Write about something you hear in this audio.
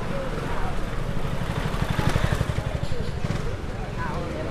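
A motor scooter rides past close by with a buzzing engine.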